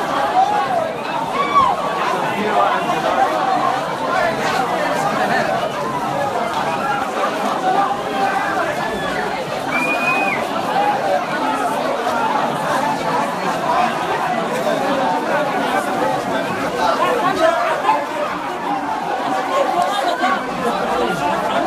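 A large crowd of young men shouts and chants loudly in an echoing hall.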